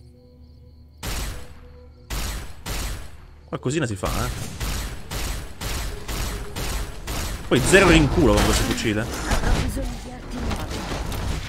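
A gun fires in rapid repeated bursts.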